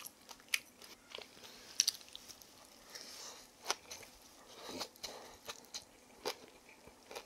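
Chopsticks clink against a wooden bowl.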